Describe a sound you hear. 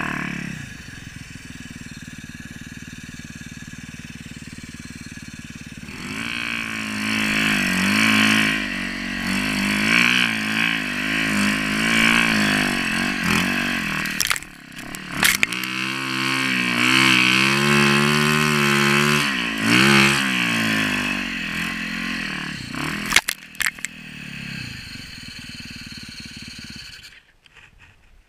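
A motorbike engine idles with a low steady hum.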